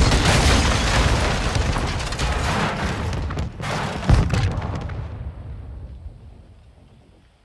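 A huge explosion booms and roars, then slowly dies away.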